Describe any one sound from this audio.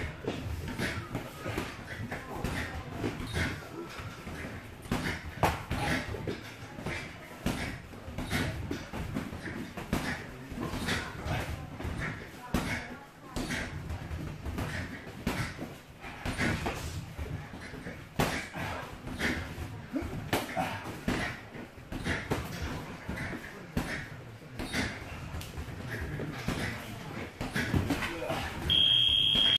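Punches and kicks thud sharply against pads, over and over.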